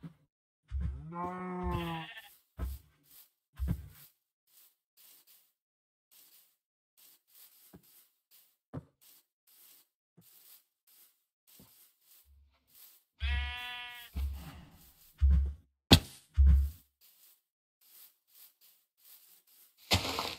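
Footsteps tread softly over grass.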